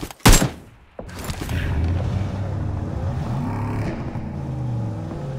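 A car engine hums and revs.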